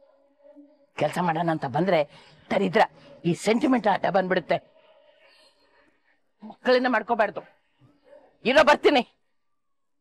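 An elderly woman speaks angrily and with emotion, close by.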